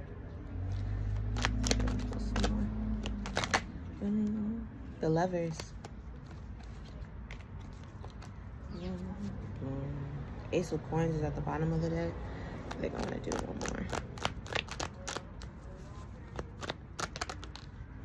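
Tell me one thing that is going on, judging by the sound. Cards rustle and tap as they are shuffled.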